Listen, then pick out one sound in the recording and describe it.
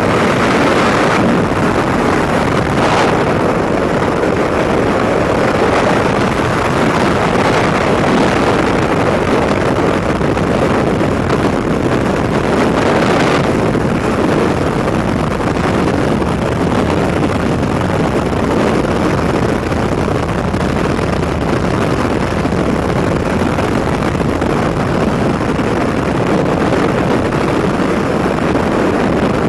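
Wind roars and buffets against a microphone in freefall.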